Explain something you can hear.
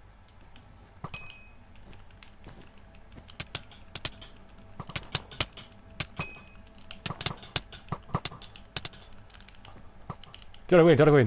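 Blocks crunch and pop as they are broken and placed in quick taps.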